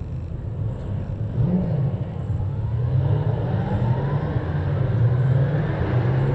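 Several racing car engines rumble and rev loudly close by.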